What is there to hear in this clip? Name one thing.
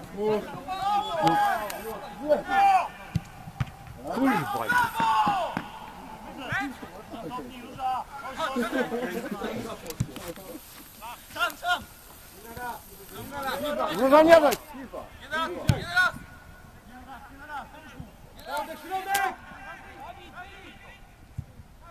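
Men shout to each other across an outdoor football pitch.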